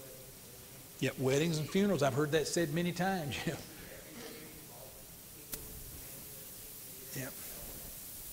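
An elderly man preaches with animation in a large echoing hall, heard through a microphone.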